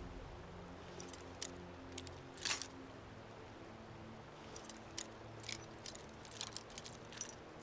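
A lock pick clicks and scrapes inside a metal lock.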